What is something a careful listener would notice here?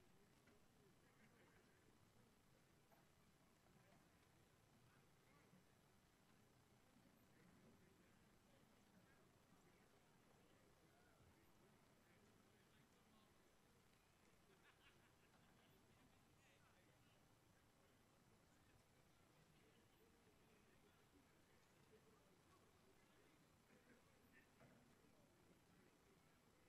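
A distant crowd murmurs faintly outdoors.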